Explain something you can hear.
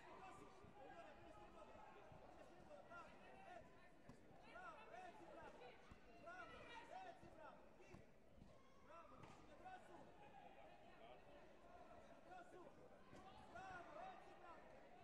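A crowd of spectators murmurs in a large echoing hall.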